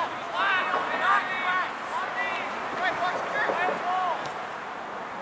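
Young players shout loudly to each other outdoors.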